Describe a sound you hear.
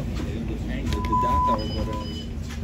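A card reader beeps once.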